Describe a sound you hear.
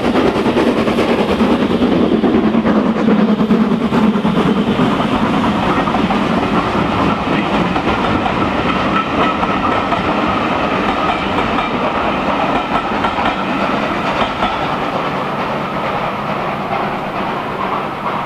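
Train wheels clatter on the rails as carriages roll by and slowly fade.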